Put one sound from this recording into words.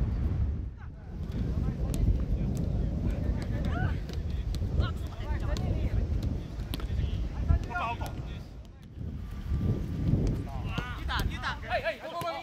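A football is kicked on grass with dull thuds.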